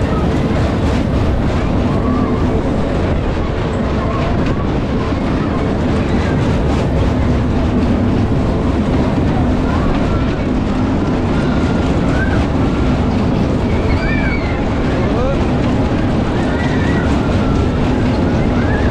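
A fairground ride's machinery rumbles steadily.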